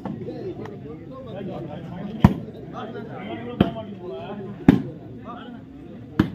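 A crowd of men chatters and calls out outdoors.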